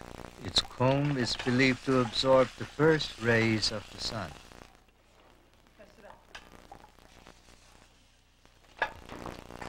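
A metal spatula scrapes against a wok.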